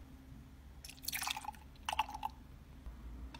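Milk pours from a plastic bottle into a metal jug.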